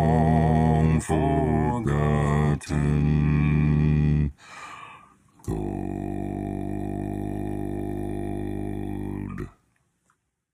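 A man sings held notes in harmony over an online call.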